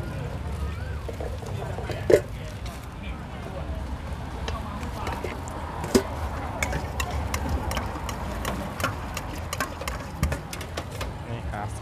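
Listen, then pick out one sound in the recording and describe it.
A metal spoon clinks against a steel bowl.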